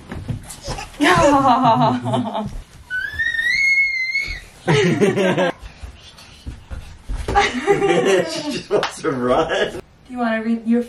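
A baby babbles and squeals happily close by.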